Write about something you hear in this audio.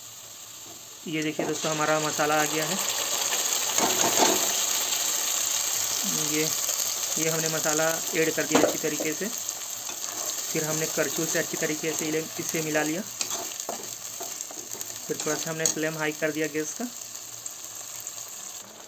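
Food sizzles loudly in a hot wok.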